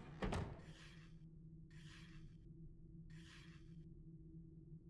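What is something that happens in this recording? Heavy metal rings grind as they turn, in short bursts.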